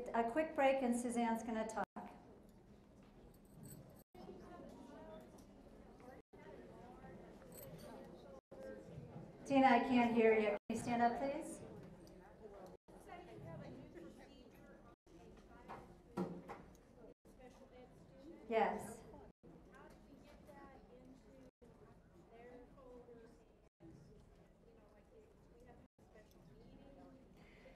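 A woman speaks to an audience through a microphone.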